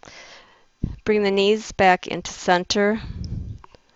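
A woman speaks calmly into a headset microphone.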